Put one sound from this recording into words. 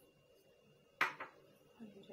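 A glass bowl knocks down onto a hard surface.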